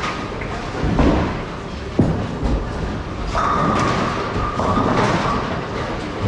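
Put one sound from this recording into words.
A bowling ball thuds onto a lane and rolls away.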